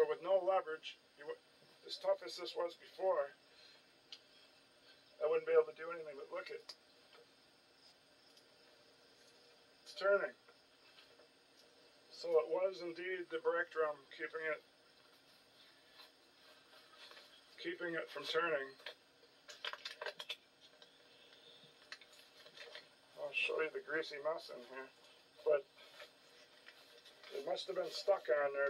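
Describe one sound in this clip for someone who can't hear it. A man speaks nearby in short, calm bursts.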